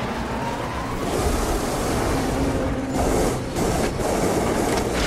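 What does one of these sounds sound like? A jet engine roars overhead.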